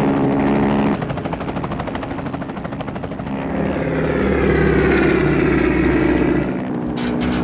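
A propeller plane's engines drone loudly overhead.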